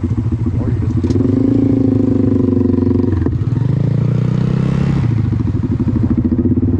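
A nearby motorcycle engine revs up and pulls away.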